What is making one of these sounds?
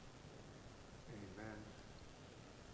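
An elderly man murmurs a few quiet words.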